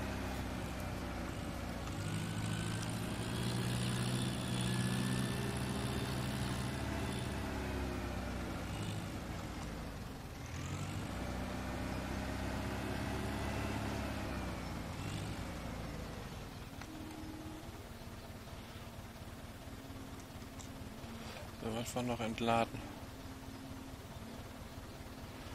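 A tractor engine rumbles and revs as it drives, then idles.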